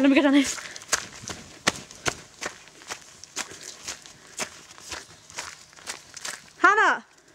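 Footsteps crunch steadily on a leafy forest path.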